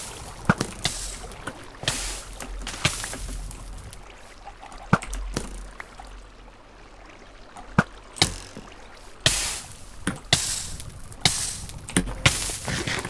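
Footsteps tap on the ground.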